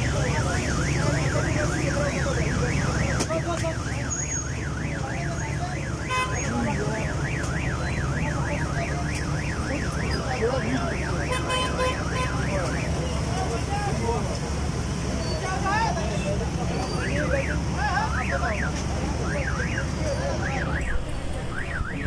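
A siren wails rapidly up and down close by.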